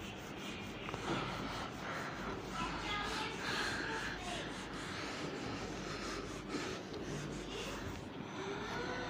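A cloth rubs across a whiteboard, wiping it.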